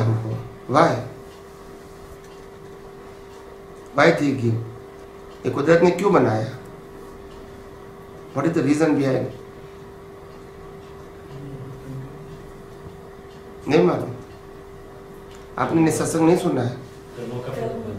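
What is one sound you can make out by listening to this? A middle-aged man speaks calmly and slowly into a nearby microphone, with long pauses.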